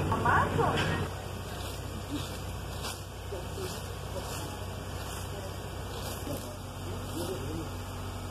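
A rake scrapes over grass and leaves.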